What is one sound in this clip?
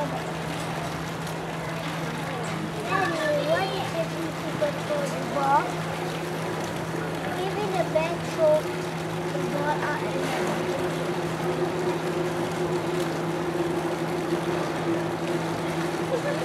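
Water splashes as a large animal swims and dives.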